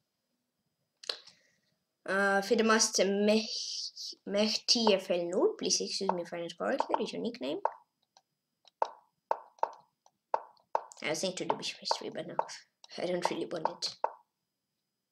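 A boy speaks with animation, close to a microphone.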